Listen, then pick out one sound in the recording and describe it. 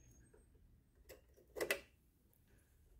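Hard plastic parts click and knock as circuit boards are handled.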